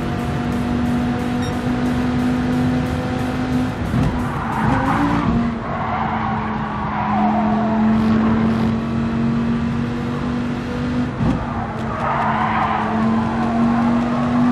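A race car engine roars steadily at high revs.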